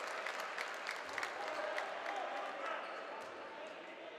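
A handball bounces on a hard floor.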